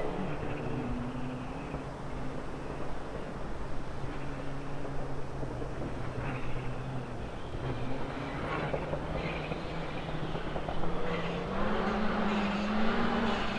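A rally car engine roars and revs as the car approaches, growing louder.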